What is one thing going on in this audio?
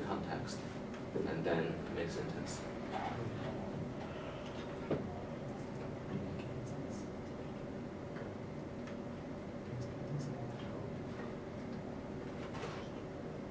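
A young woman talks quietly with a young man.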